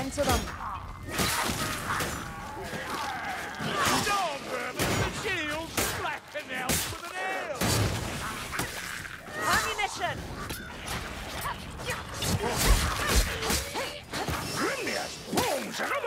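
Blades swish and clash in a fight.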